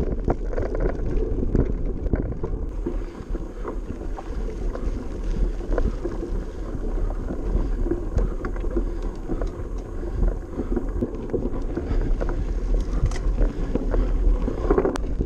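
Bicycle tyres rattle and crunch over a bumpy dirt trail.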